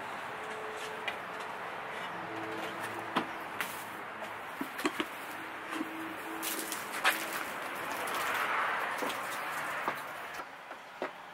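A hose knocks and rubs against a van.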